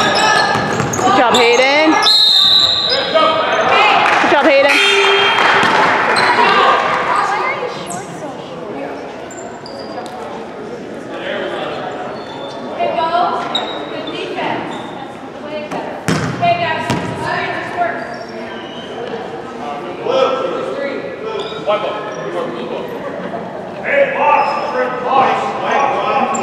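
Boys and young people talk and call out across the echoing gym.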